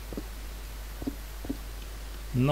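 Stone blocks crack and break apart.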